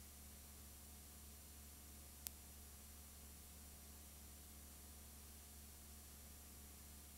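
Static hisses steadily.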